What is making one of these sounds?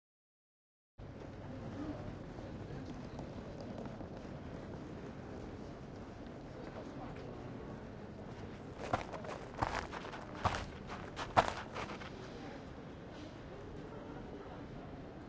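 Quiet, steady background noise hums through a large empty space.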